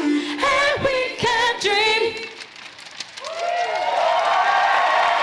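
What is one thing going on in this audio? A large group of young people sings loudly together in a big hall.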